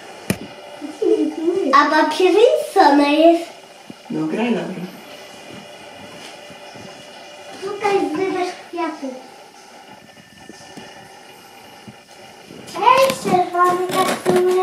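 A young girl talks and sings with animation close by.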